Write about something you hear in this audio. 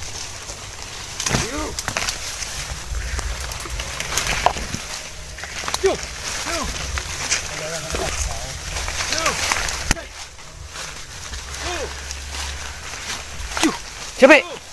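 Leaves and branches rustle and swish as someone pushes through dense undergrowth.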